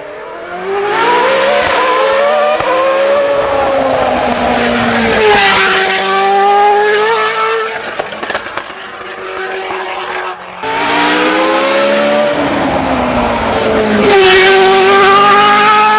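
A racing car engine screams at high revs, rising and falling through gear shifts as the car speeds past close by.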